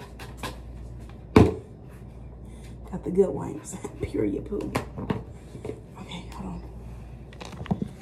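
A wet wipe rustles as it is pulled from a plastic tub.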